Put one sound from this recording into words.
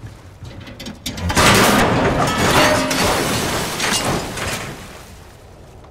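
A metal ladder clatters and scrapes loudly.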